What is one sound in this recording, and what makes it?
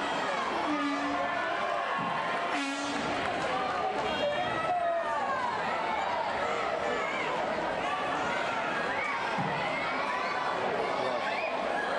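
A crowd of spectators shouts and cheers throughout in a large echoing hall.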